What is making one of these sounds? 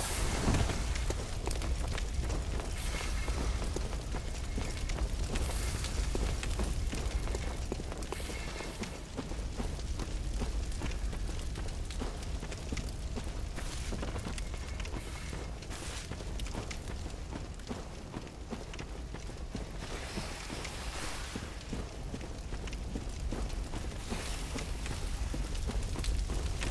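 Footsteps crunch on a dirt path at a steady walking pace.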